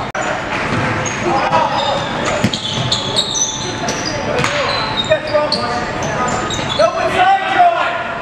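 A basketball bounces on a hard floor as a player dribbles.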